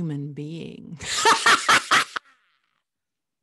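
A woman laughs loudly, close to a microphone.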